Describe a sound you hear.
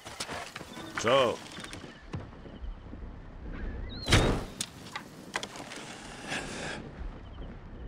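A bow is drawn and an arrow whooshes away with a sharp release.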